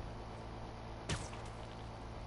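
A body lands with a thud.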